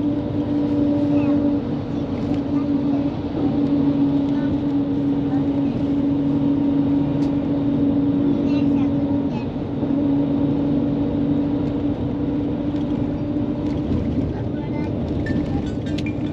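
A car engine hums steadily from inside the car while it drives.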